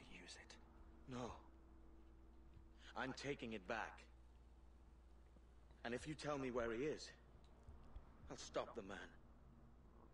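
A man speaks calmly and slowly, in short phrases.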